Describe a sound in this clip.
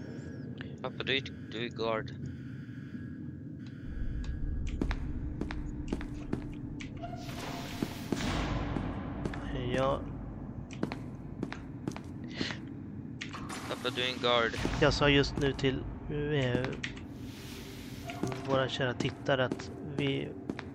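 Footsteps tap on a hard tiled floor at a walking pace.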